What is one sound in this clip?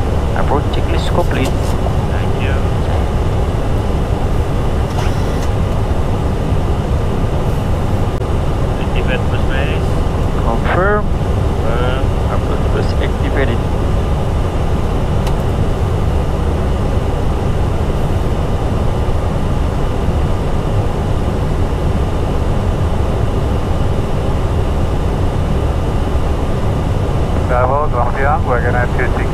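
A steady low roar of an aircraft in flight fills the cockpit.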